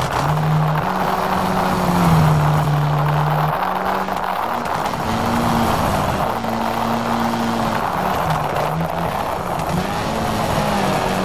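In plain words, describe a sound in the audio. A rally car engine revs hard and shifts gears.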